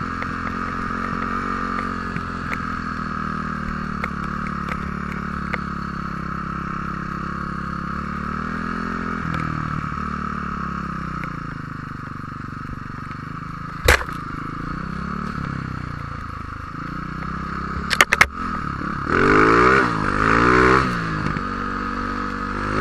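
A snowmobile engine drones steadily, rising and falling in pitch.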